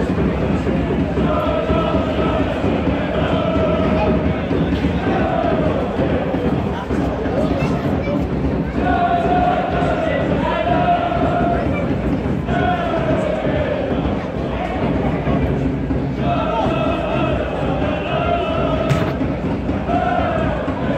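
A large crowd chants and sings together outdoors.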